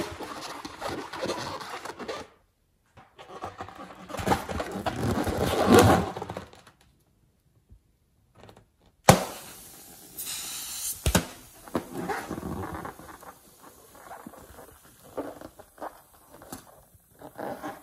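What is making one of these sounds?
Hands rub and squeak against a rubber balloon.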